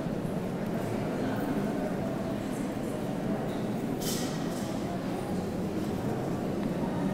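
An elderly man speaks calmly through a microphone and loudspeakers in an echoing hall.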